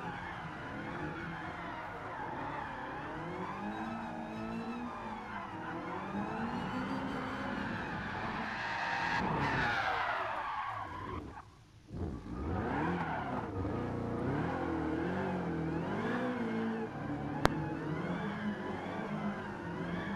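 A car engine roars and revs up and down through gear changes.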